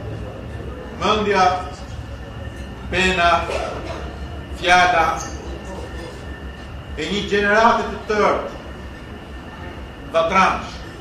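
A middle-aged man speaks formally into a microphone, heard through loudspeakers.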